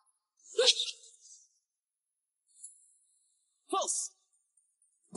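A young woman speaks in short, upset bursts.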